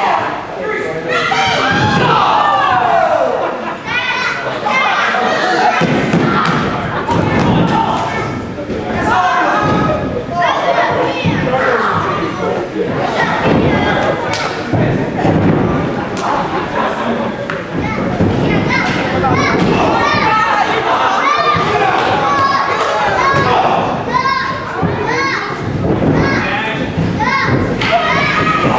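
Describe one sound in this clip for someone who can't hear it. A crowd of men shouts and cheers loudly in an echoing hall.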